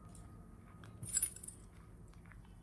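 A short bright chime rings out once.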